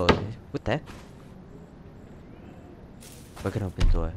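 A wooden door swings shut.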